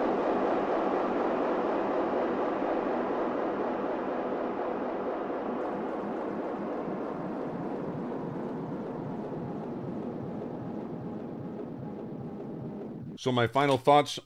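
An electric guitar chord rings out and slowly fades.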